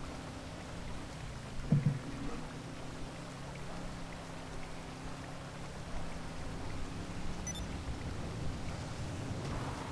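Water rushes and splashes under a speeding boat's hull.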